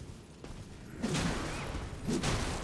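A magical whoosh swells up and shimmers.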